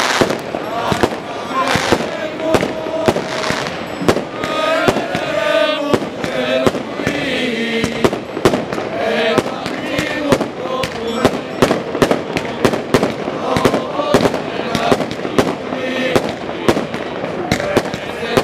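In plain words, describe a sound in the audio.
A crowd of men and women sing a hymn together outdoors.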